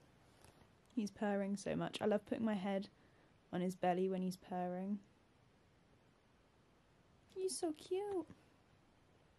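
A young woman speaks softly and warmly close by.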